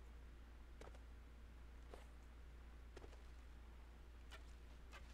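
Footsteps thud slowly on rocky ground.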